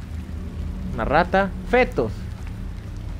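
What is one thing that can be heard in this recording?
A young man exclaims loudly close to a microphone.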